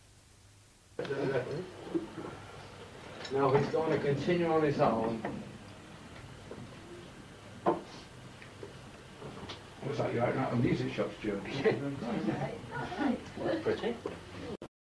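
Men and women chatter and talk over one another nearby in a lively crowd.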